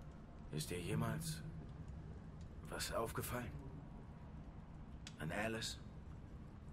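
A young man speaks quietly and hesitantly, close by.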